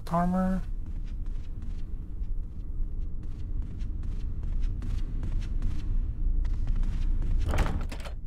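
Footsteps tap on a wooden floor in a large echoing hall.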